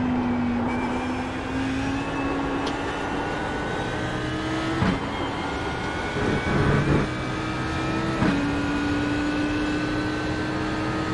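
A racing car engine roars and climbs in pitch as it speeds up.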